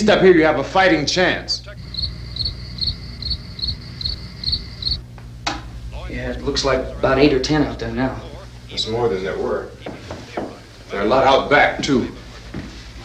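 A man speaks urgently and close by.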